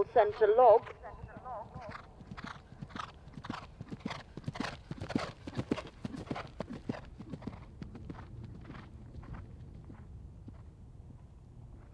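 A horse gallops with hooves thudding on the turf.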